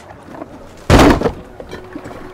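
A heavy wooden crate thuds down onto boards.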